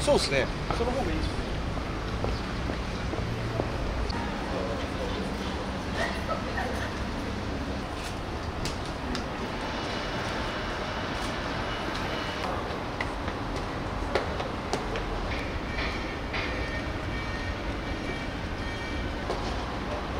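A busy street hums with distant traffic and passers-by.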